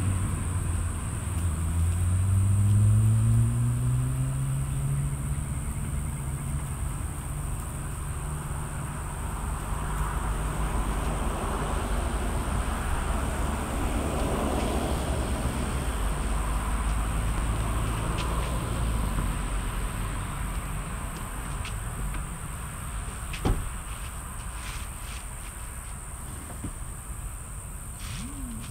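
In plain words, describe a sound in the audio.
A woman rummages through items in the back of a vehicle, with soft knocks and rustles.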